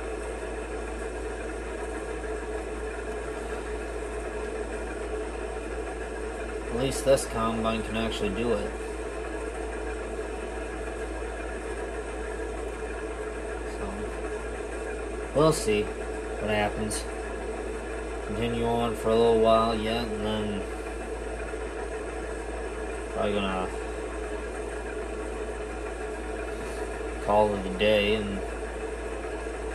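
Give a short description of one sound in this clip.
A harvester engine drones steadily through a television speaker.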